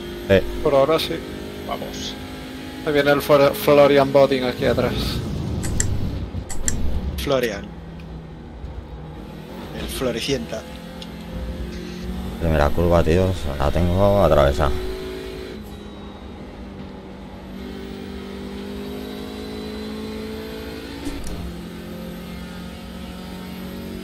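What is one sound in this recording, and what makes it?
A racing car's engine drones and changes pitch with the gears.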